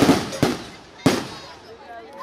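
A single firework bangs loudly.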